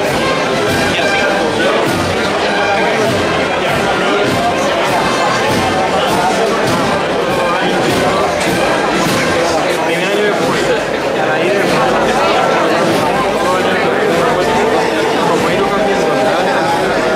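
A large crowd of men and women murmurs and chatters close by.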